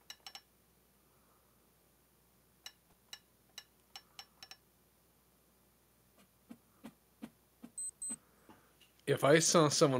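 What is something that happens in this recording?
A hammer taps sharply on nails, again and again.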